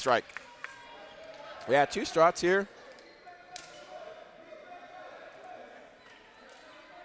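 Sneakers squeak on a wooden court in an echoing gym.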